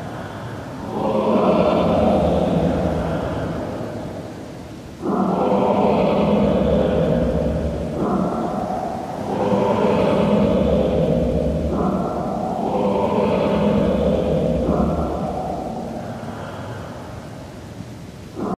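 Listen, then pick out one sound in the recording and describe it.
A huge whale-like creature lets out long, deep, echoing moans again and again.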